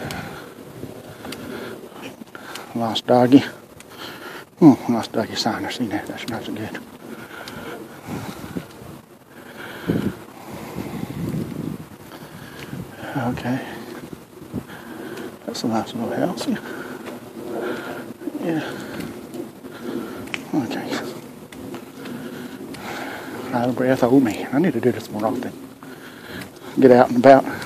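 A middle-aged man talks into a phone microphone up close.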